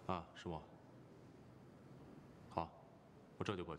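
A man speaks briefly in a low, calm voice.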